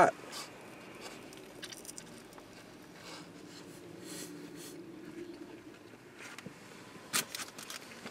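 A man chews food with his mouth close by.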